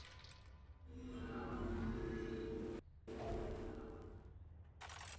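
A magical portal swirls open with a low, droning hum.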